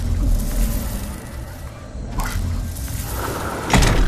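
Electric sparks crackle and fizz from a small machine.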